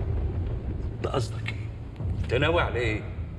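An elderly man speaks in a startled voice.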